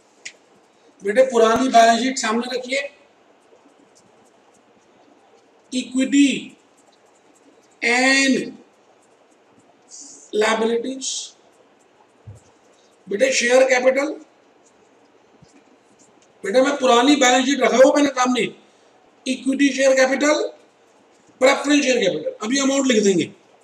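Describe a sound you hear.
A middle-aged man lectures close to a microphone in short bursts with pauses.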